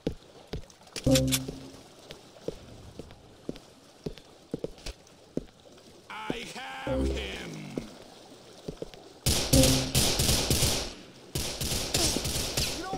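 A young man shouts excitedly into a close microphone.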